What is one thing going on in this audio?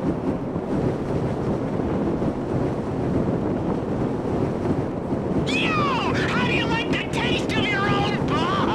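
Wind rushes steadily past a parachute in flight.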